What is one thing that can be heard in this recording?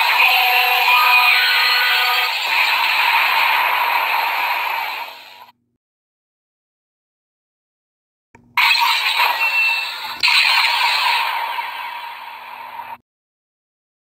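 A toy gadget plays loud electronic music and sound effects.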